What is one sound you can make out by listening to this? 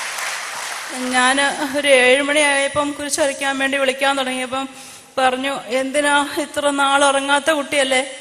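A middle-aged woman sings into a microphone, heard through loudspeakers.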